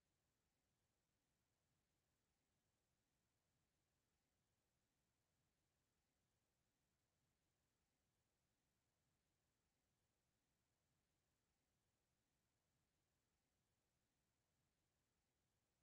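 A clock ticks steadily and quietly.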